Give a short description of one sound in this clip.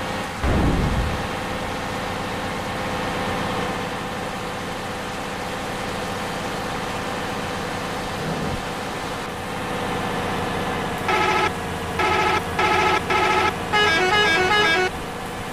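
A diesel engine drones steadily.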